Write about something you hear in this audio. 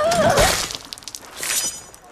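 A man groans in pain up close.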